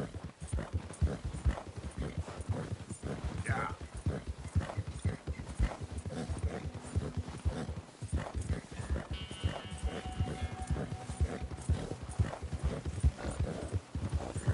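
Horse hooves crunch quickly and steadily through deep snow.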